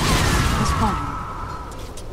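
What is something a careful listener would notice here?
Swords clash and magic blasts crackle in a battle.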